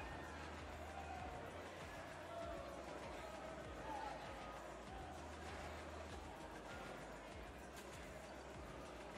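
Ice skates scrape and swish on ice.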